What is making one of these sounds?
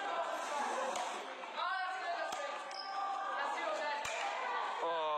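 A badminton racket strikes a shuttlecock with sharp pops in a large echoing hall.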